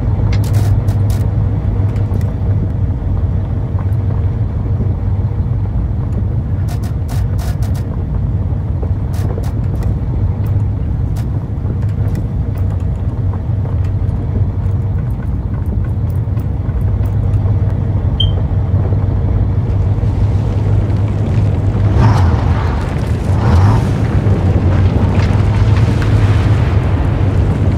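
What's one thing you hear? A low machine hum drones steadily throughout.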